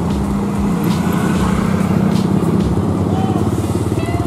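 A motorcycle engine rumbles as it passes close by.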